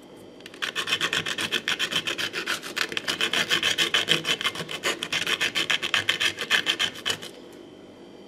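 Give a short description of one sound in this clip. Rapid scraping rubs across a rough gritty surface.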